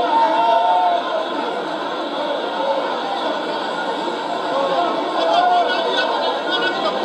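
A crowd of women sings together loudly.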